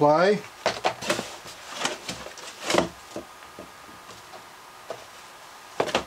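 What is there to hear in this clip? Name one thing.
Cardboard and paper rustle and scrape as they are handled.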